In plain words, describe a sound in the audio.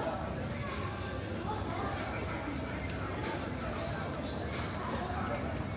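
Footsteps echo on a hard floor in a large hall.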